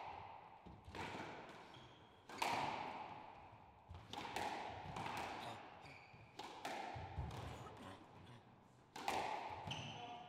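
A squash ball smacks against rackets and walls, echoing sharply in a large hard-walled court.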